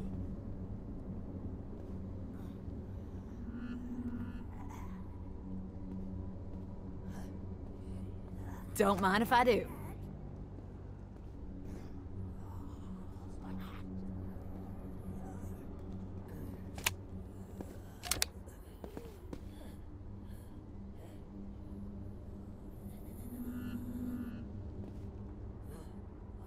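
Soft footsteps shuffle on a hard floor.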